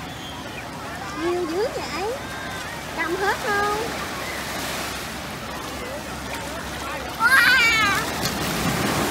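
A young girl speaks and squeals nearby.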